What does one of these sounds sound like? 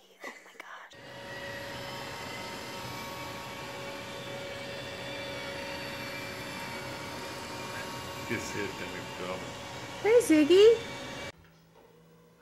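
A robot vacuum hums steadily.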